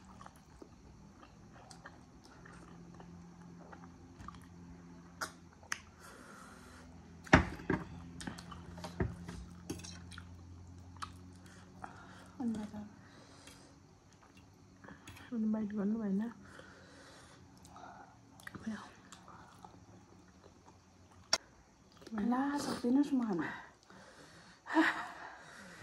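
Young women chew food and smack their lips close by.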